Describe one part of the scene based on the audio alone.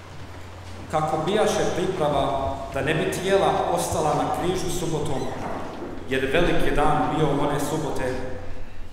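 A man chants into a microphone in a large echoing room.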